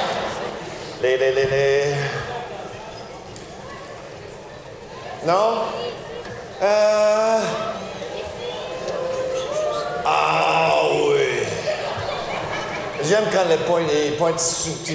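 A man speaks with animation through a microphone in a large hall.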